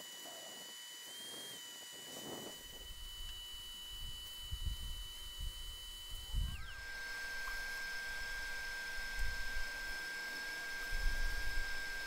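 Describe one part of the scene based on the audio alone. A wrench clicks and scrapes against a metal engine.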